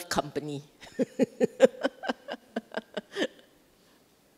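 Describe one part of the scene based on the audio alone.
A middle-aged woman laughs into a microphone.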